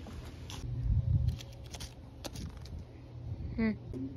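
A soft toy brushes and bumps against wooden boards.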